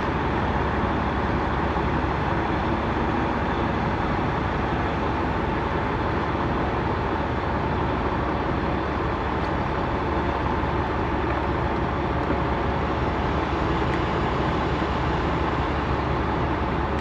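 A truck's diesel engine rumbles steadily from inside the cab as the truck rolls slowly.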